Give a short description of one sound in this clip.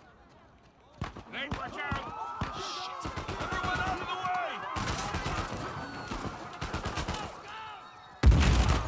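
A man shouts urgently, heard close.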